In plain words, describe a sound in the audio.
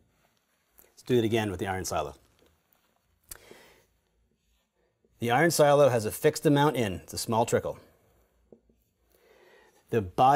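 A man speaks calmly and clearly into a close microphone, in short phrases.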